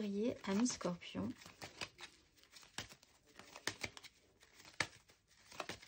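Playing cards riffle and slap softly as a deck is shuffled by hand.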